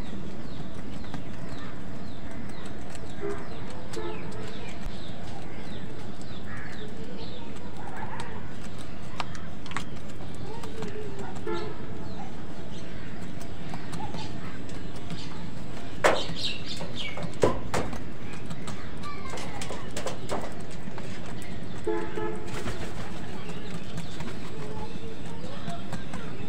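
Crows' beaks peck and tap at a bowl of food.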